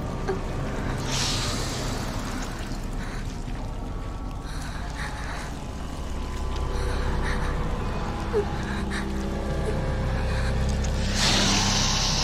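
A large snake hisses loudly.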